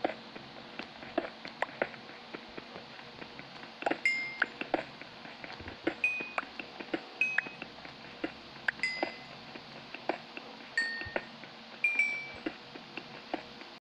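A pickaxe chips at stone with quick, repeated taps.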